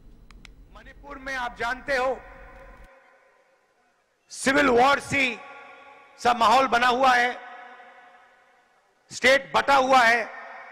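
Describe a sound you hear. A man speaks forcefully through a loudspeaker, his voice echoing outdoors.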